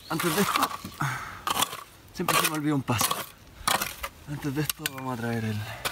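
A shovel scrapes and digs into gravelly soil.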